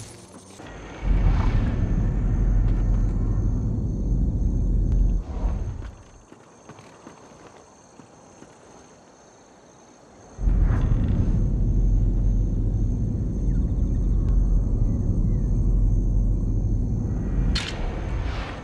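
Heavy crates grind and rumble as they slide.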